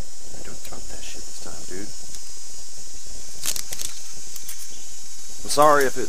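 Metal handcuffs click and rattle.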